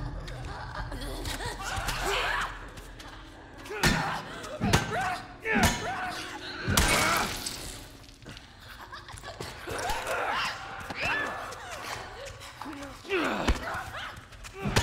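Creatures shriek and snarl as they attack.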